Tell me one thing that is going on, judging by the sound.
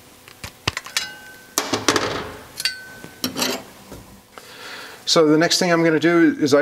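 Thin metal pieces clink and rattle as they are handled.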